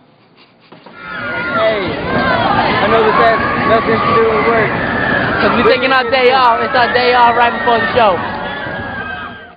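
A crowd chatters loudly outdoors.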